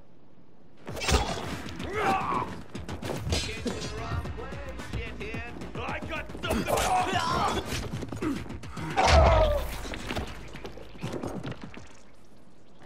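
Blunt weapon blows land with heavy thuds.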